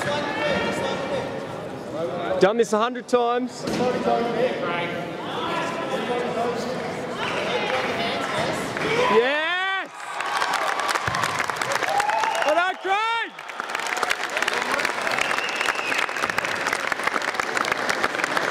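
A crowd of spectators shouts and cheers in a large echoing hall.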